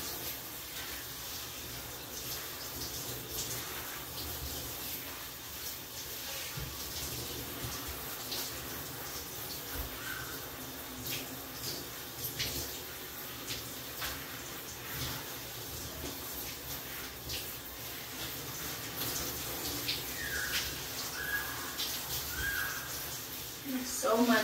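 Water splashes in a bathtub.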